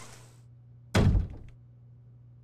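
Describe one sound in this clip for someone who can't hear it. A heavy wooden door thuds shut.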